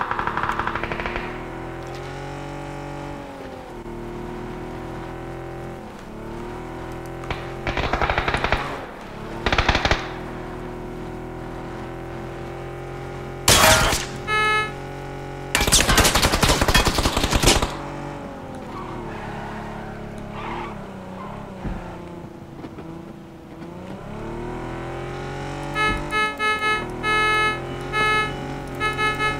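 A car engine hums steadily and rises and falls in pitch as it drives over rough ground.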